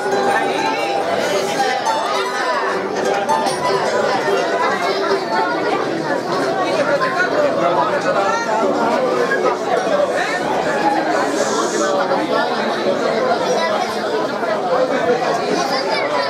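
A group of mandolins and guitars plays a lively tune together outdoors.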